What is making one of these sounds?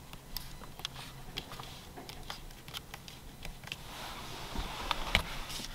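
A finger clicks buttons on a steering wheel.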